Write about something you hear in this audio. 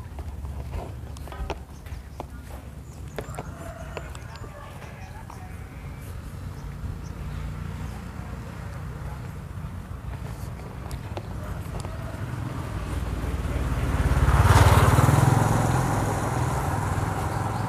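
Footsteps shuffle on pavement.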